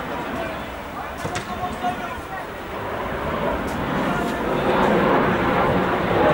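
Young men shout to each other from afar across an open outdoor field.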